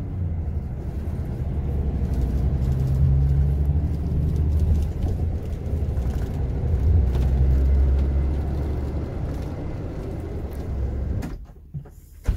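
A vehicle engine rumbles low and steady while driving.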